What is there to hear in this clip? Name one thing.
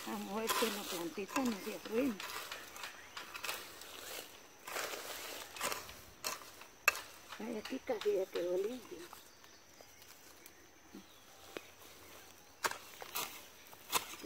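Hands scrape and dig in loose soil close by.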